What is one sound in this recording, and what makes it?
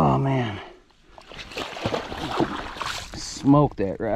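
Water splashes as a fish is pulled from it.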